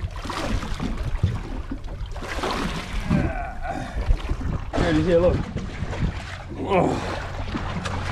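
Water splashes as a fish thrashes at the surface.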